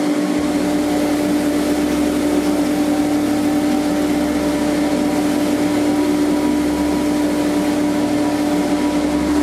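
Metal grinds harshly against a spinning wheel.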